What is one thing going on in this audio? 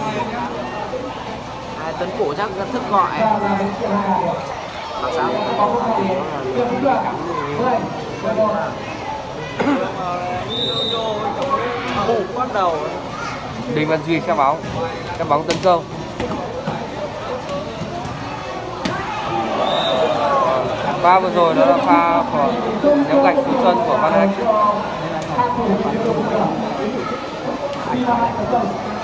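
A large outdoor crowd chatters and cheers loudly throughout.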